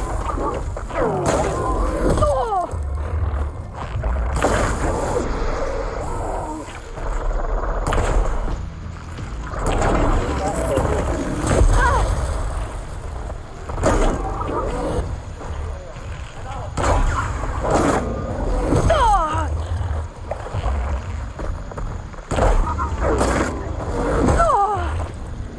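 A large machine creature lets out metallic screeches.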